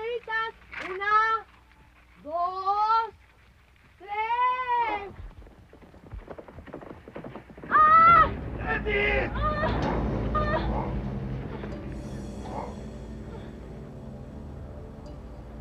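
Horse hooves thud on a dirt track.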